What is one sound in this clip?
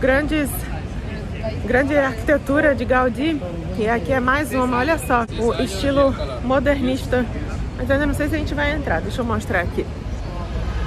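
A woman speaks calmly and close up, outdoors.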